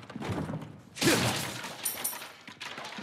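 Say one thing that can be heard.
A wooden barrel smashes apart with a loud crack.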